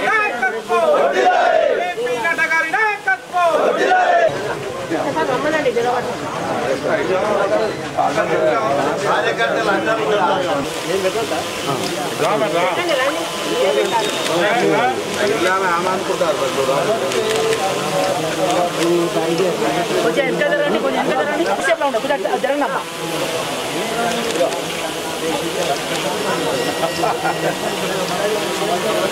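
A crowd of men talk and call out at once, close by.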